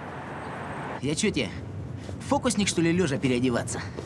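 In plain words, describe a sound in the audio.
A man speaks urgently and close by.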